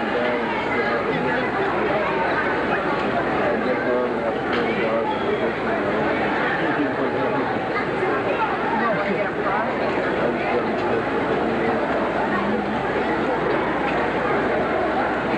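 A large crowd murmurs and chatters in the distance, in a wide open space.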